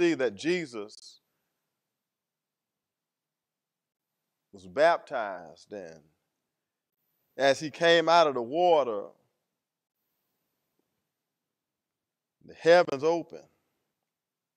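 A man preaches through a microphone in short, forceful phrases with long pauses.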